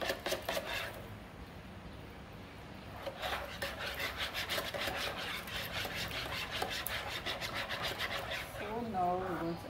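A whisk beats liquid rapidly against the side of a bowl.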